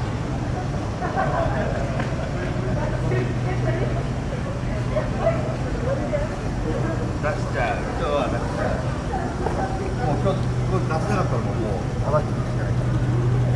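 Men and women talk faintly in the distance on a busy street.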